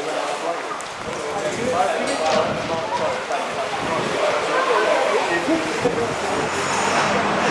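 Several men talk among themselves close by.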